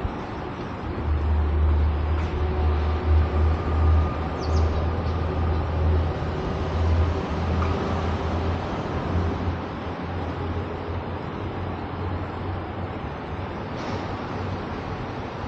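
Wind buffets the microphone in low gusts.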